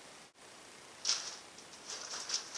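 Newspaper pages rustle and crinkle loudly as they are folded down.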